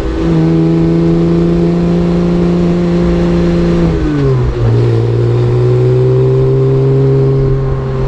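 A motorcycle engine roars steadily at speed, dropping in pitch as it shifts gear and then droning on.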